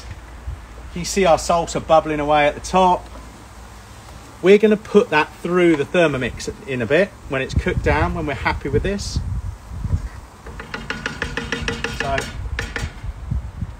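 Sauce bubbles and sizzles in a hot pan.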